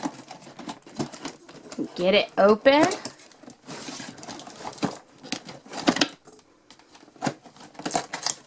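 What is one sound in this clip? Cardboard rustles and scrapes as an insert slides out of a box.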